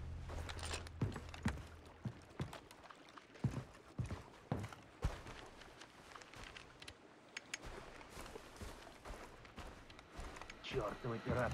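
Footsteps thud steadily across wooden boards and sand.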